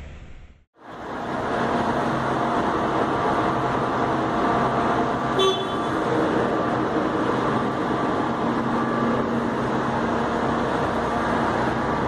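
A bus engine hums nearby.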